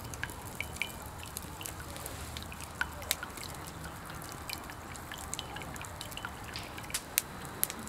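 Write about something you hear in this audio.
A campfire crackles and pops nearby.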